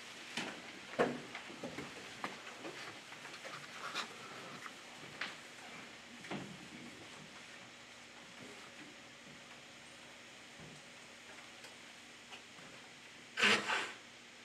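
Objects clink and knock on a table.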